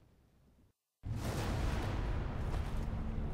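Flames roar loudly.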